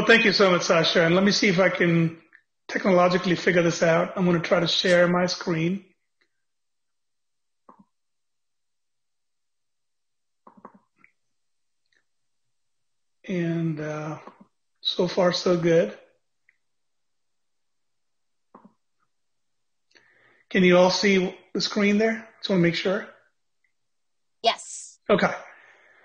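A middle-aged man speaks calmly over an online call, pausing now and then.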